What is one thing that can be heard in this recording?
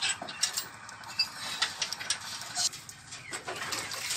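Chickens cluck and chirp nearby.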